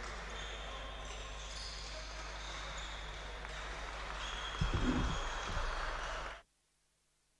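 Players murmur and call out faintly in a large echoing hall.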